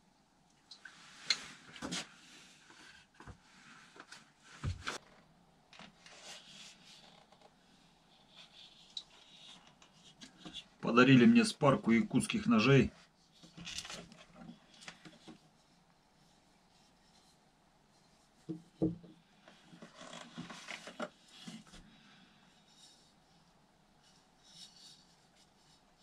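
A knife clicks and rattles as a man handles it and its sheath.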